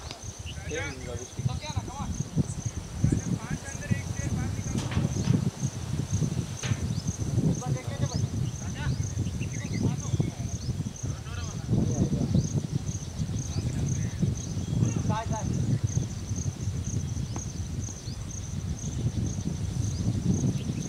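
Wind blows over the microphone outdoors, rumbling steadily.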